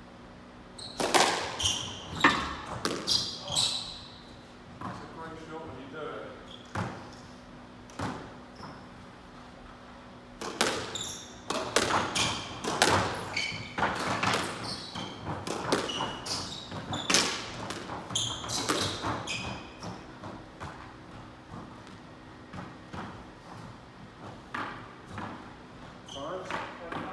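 Rackets strike a squash ball with sharp cracks.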